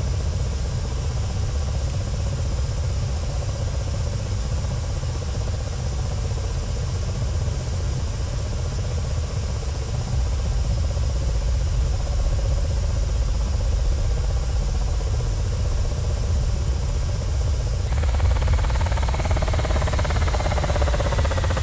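A helicopter's rotor drones with a low, steady thumping.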